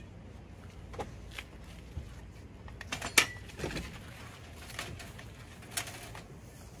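Tools and a hose clatter and knock as they are handled close by.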